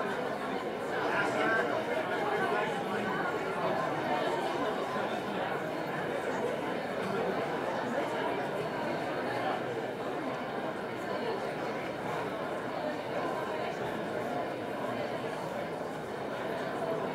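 A crowd of men and women chatter quietly in a large, echoing hall.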